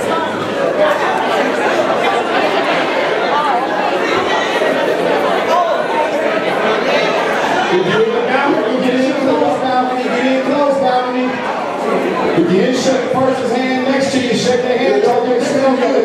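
A congregation sings together loudly in a large echoing hall.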